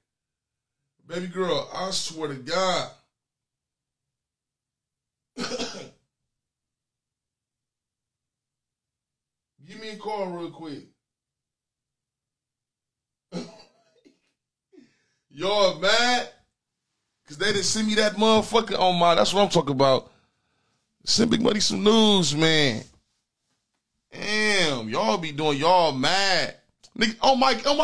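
A young man speaks animatedly and close into a microphone, in bursts with pauses.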